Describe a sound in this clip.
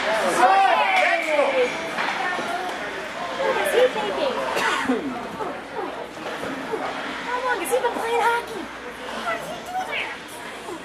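Skate blades scrape and hiss across ice.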